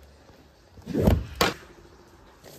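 A plastic lid pops off a container.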